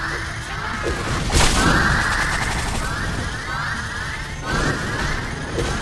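Game weapons fire rapid zapping shots.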